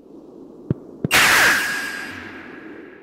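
A blade swishes through the air with a whoosh.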